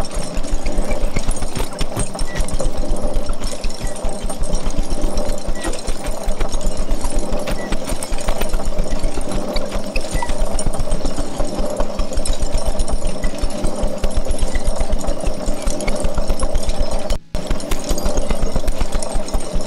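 Small objects scrape and rattle on a tabletop.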